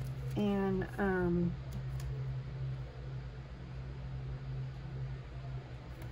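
Tape peels off a roll.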